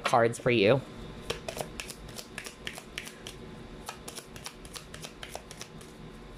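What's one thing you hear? Hands tap and brush lightly on a wooden table.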